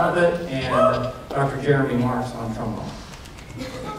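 A man speaks into a microphone over a loudspeaker in a large hall.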